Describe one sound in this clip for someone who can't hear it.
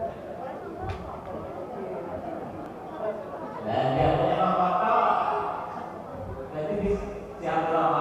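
A man speaks with animation into a microphone, heard through a loudspeaker in an echoing hall.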